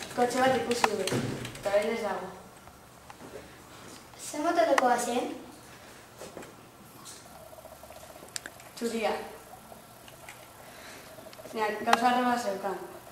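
A young woman talks nearby in a relaxed, conversational tone.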